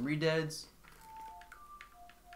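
An ocarina plays a few short, clear notes.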